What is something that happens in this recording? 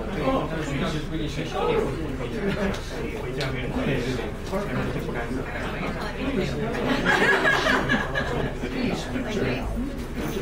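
Many men and women chatter at once in a room that echoes a little.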